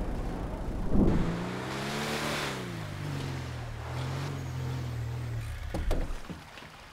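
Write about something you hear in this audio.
A vehicle engine revs up and settles to a low hum.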